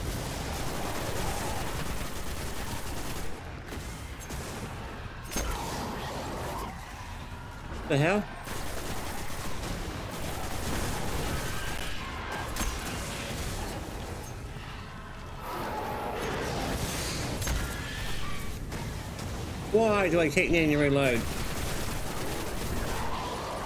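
Gunfire from a game crackles and booms in rapid bursts.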